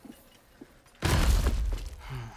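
A heavy body thuds onto a wooden floor.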